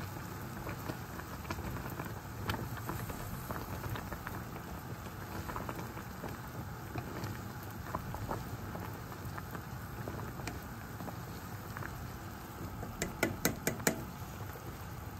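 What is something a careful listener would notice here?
Metal tongs clink against a pot.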